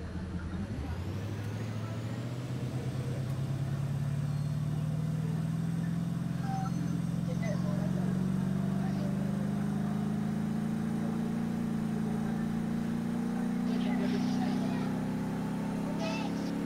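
A vehicle engine hums steadily and slowly rises in pitch as it speeds up.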